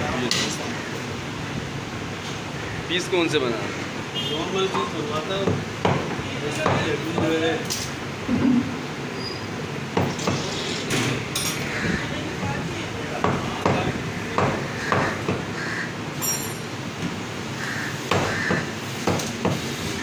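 A knife slices through raw meat.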